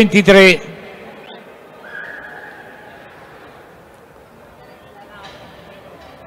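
A crowd murmurs faintly in a large echoing hall.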